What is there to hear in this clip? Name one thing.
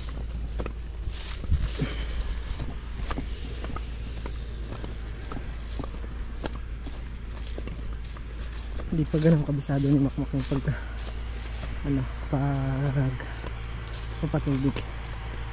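A sprayer nozzle hisses steadily close by.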